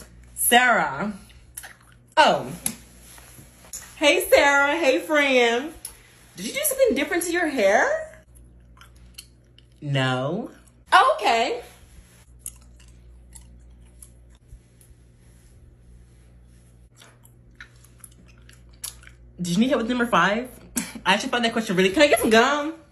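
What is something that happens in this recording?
A young woman speaks animatedly and theatrically, close up.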